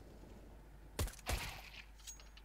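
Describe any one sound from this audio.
A pistol fires two sharp shots in quick succession.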